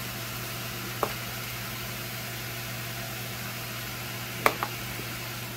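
A spice shaker clicks and taps over a pot.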